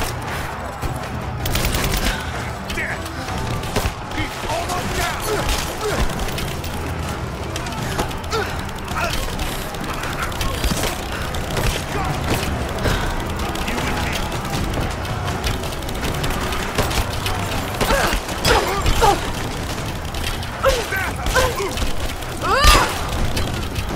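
Fires crackle and roar nearby.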